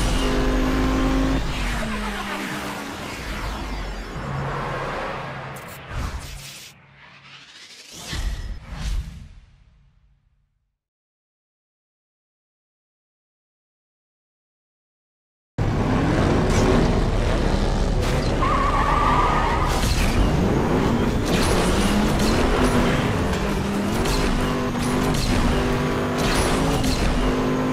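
A motorcycle engine roars at high speed.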